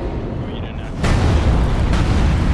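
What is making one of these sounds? A heavy crash booms and rumbles.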